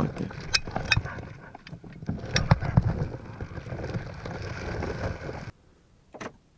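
Metal knocks and rattles close by.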